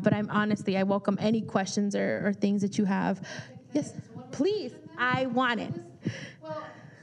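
A woman speaks into a microphone with animation, heard through a loudspeaker in a large room.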